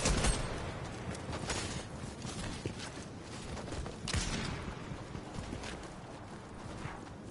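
Footsteps run quickly over sand and grass.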